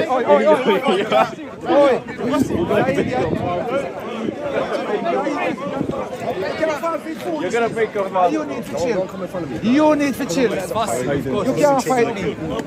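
Several young men talk loudly over one another in a crowd outdoors.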